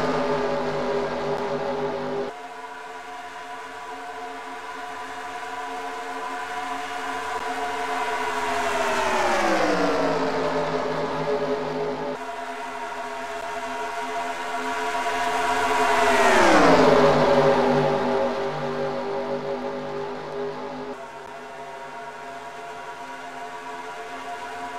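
Racing car engines roar steadily as a pack of cars speeds along a track.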